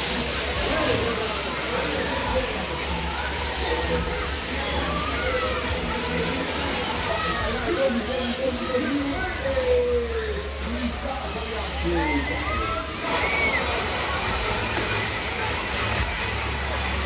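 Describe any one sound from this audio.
A crowd of young people shouts and chatters.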